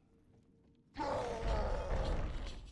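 A ghostly rushing sound swells up suddenly.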